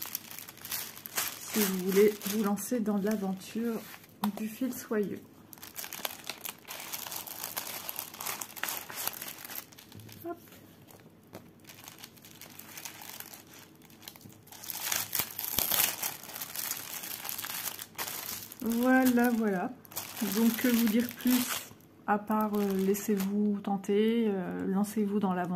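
Plastic sleeves crinkle and rustle as hands handle them.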